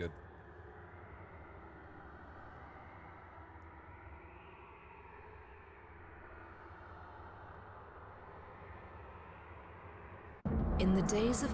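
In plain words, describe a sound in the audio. A man talks quietly and close to a microphone.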